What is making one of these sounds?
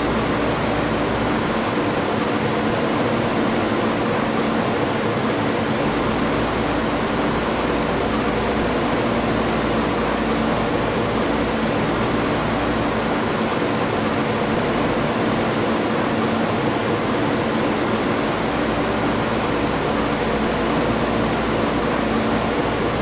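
A combine harvester engine drones steadily.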